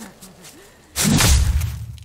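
A fiery explosion bursts with a loud, deep boom.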